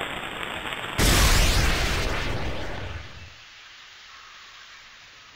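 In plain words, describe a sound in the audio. A firework rocket whooshes up into the air.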